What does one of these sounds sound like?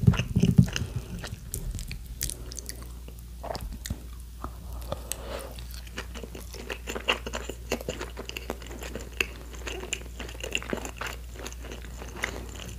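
A young woman chews food close to a microphone with crunchy, wet clicks.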